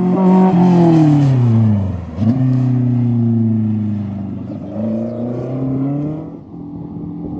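A race car engine roars loudly, dropping in pitch as the gears shift and then revving up again.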